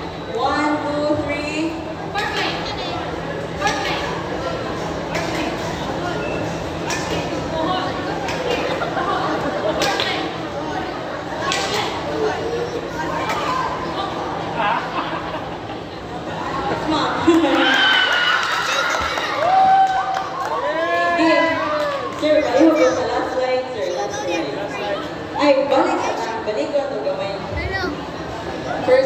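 A crowd chatters in the background.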